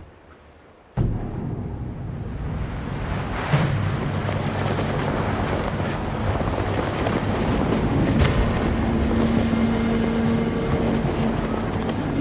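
Wind blows strongly outdoors.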